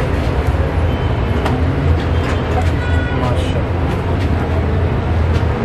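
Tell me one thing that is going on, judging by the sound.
A metal ladle clinks against a steel pot and bowl.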